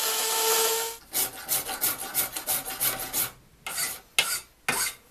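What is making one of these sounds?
A metal file rasps back and forth across a steel bar in quick strokes.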